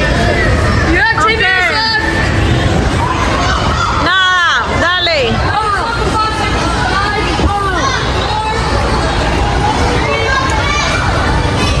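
Young children shriek and squeal excitedly in a large echoing hall.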